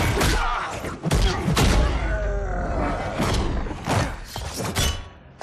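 Heavy punches land with thudding impacts.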